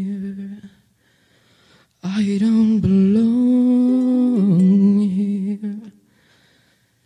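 A ukulele is strummed.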